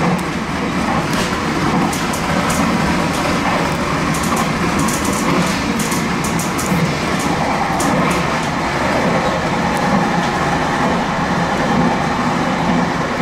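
A train rumbles steadily along the tracks from inside the cab.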